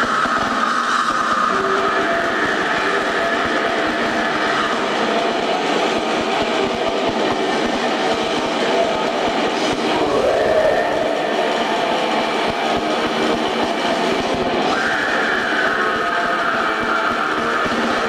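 A man sings harshly into a microphone.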